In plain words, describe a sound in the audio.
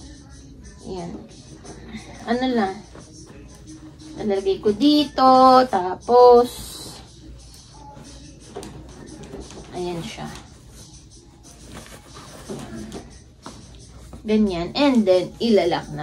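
A young woman talks calmly and close by.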